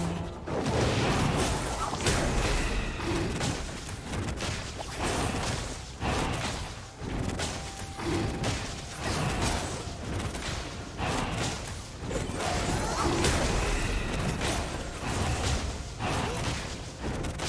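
Magic spells and attacks crackle and whoosh in a fight.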